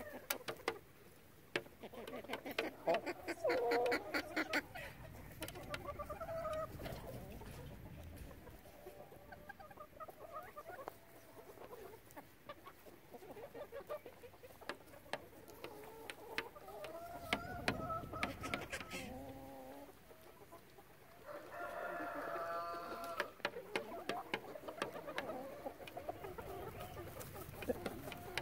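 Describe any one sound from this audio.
Beaks peck and tap against a plastic tray.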